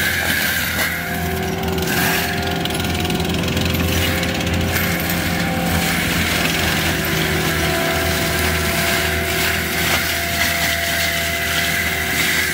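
A mulcher head whirs and grinds through brush and soil.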